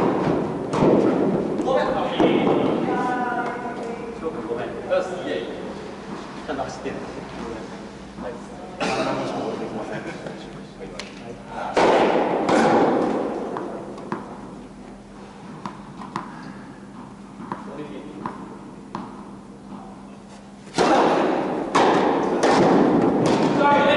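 Tennis balls are struck with rackets, echoing in a large hall.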